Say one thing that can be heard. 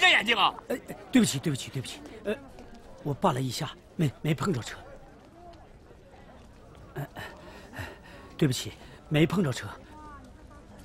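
A middle-aged man apologises hurriedly, close by.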